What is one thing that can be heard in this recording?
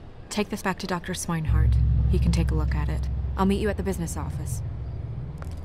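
A woman speaks calmly and firmly, close by.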